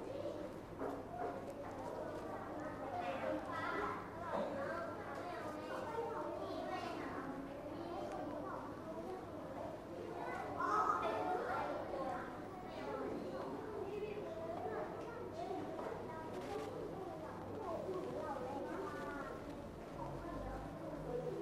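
A young girl speaks clearly and steadily into a microphone.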